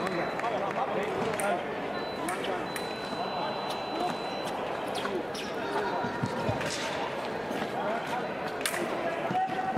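Fencers' feet stamp and shuffle on the piste.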